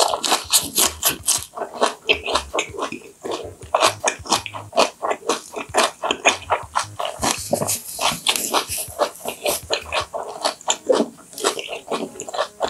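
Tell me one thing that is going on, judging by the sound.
A young woman chews food loudly and wetly close to a microphone.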